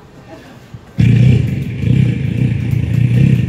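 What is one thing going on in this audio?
Loud music with a deep beat plays through loudspeakers.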